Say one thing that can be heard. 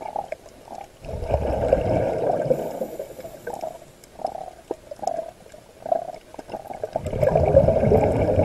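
Air bubbles from a diver's breathing burst and gurgle underwater in rushes.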